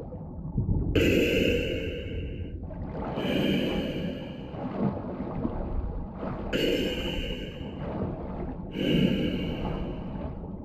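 Air bubbles burble and rise underwater.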